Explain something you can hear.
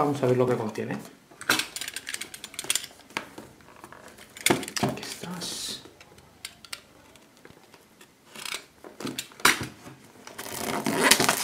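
A cardboard box is handled, tapping and scraping close by.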